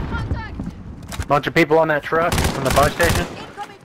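A rifle magazine is pulled out and clicks back into place.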